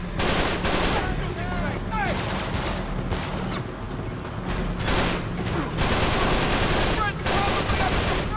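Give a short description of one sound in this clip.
Rifle shots crack in bursts.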